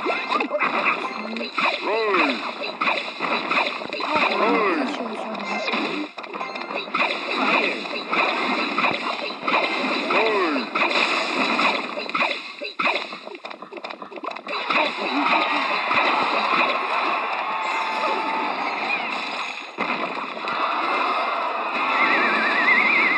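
A game plays battle sound effects with thumps and bursts.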